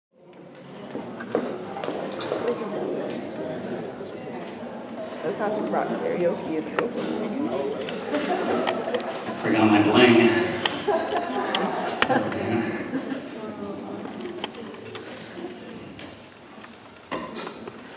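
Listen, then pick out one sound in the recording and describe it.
An elderly man talks with animation into a microphone, heard through loudspeakers in an echoing hall.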